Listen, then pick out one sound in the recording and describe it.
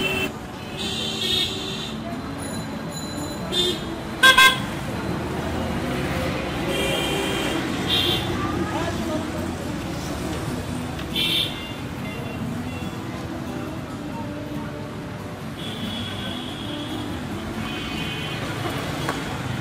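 Metal tongs click and scrape against a metal pan.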